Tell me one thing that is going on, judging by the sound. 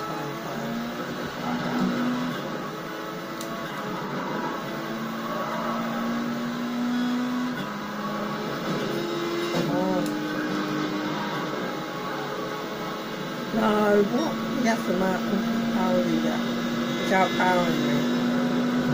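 A racing car engine roars and shifts gears through a loudspeaker.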